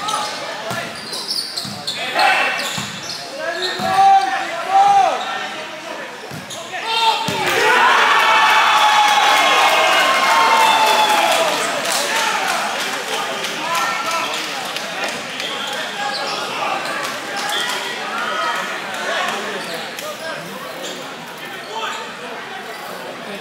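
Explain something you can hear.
Players call out to each other across the court.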